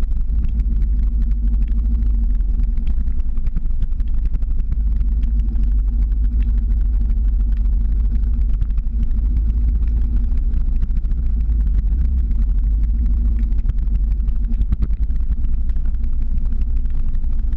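Small hard wheels roll and rumble steadily on asphalt.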